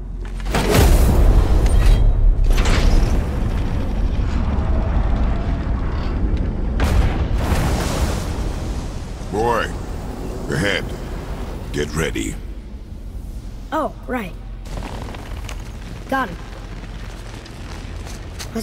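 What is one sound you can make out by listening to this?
A deep, steady magical hum rumbles, loudest at the start and slowly fading.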